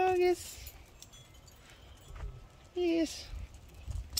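A small dog barks sharply nearby.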